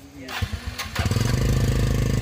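A motorbike engine starts and idles loudly close by.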